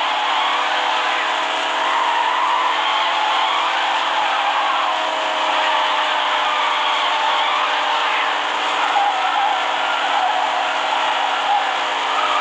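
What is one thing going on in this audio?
Tyres screech as a car drifts around bends.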